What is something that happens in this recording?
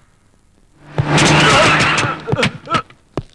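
A car engine roars past at speed.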